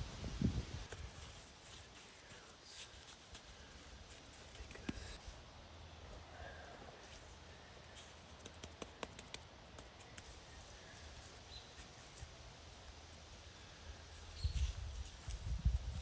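A stone scrapes and grinds as it is pressed into wet mortar.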